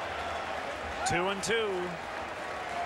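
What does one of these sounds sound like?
An umpire shouts out a call.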